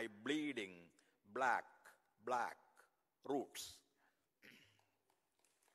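An elderly man recites slowly and expressively through a microphone in an echoing hall.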